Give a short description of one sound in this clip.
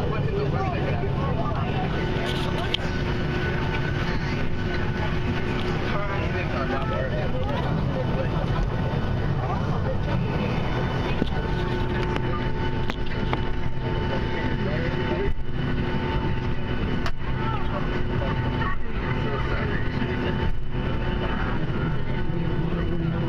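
An aircraft engine drones steadily from inside the cabin.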